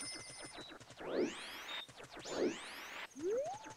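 A sword swishes through the air in quick swings.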